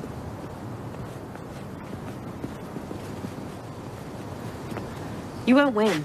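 Footsteps approach on pavement outdoors.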